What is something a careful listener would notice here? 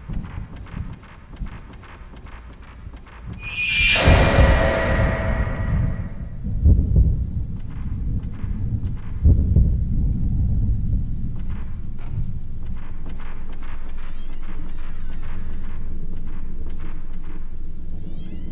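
Footsteps tap on creaking wooden floorboards.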